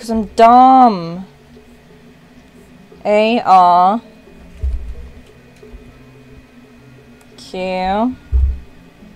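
A young woman speaks into a close microphone in short, animated bursts.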